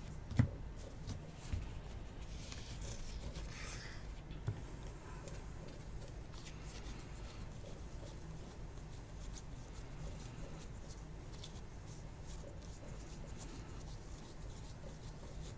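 Trading cards rustle and slide against each other as they are shuffled by hand.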